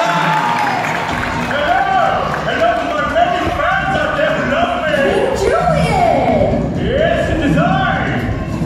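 Loud pop music with singing plays over loudspeakers in a large hall.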